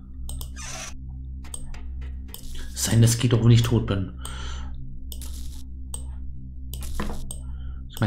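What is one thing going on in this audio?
Electrical wires snap into place with short clicks.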